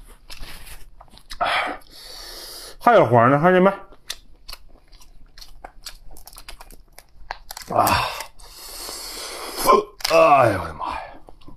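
A lobster shell cracks and crunches as it is pulled apart.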